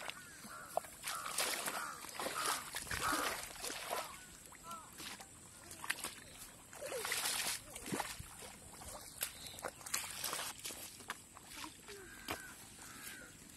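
Feet splash and squelch through shallow muddy water.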